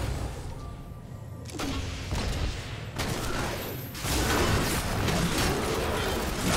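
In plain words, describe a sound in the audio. Magic spells burst and crackle in a fast game battle.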